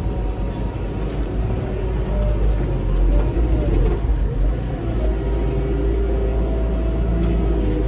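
A loader bucket scrapes and pushes through a heap of grass.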